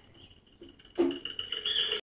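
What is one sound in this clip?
A cartoon soundtrack with music and sound effects plays loudly through a television speaker.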